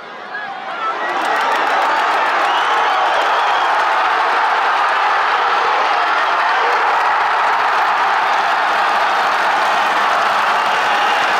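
A large crowd roars loudly.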